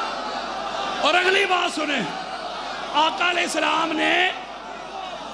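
A man chants loudly through a loudspeaker in a large echoing hall.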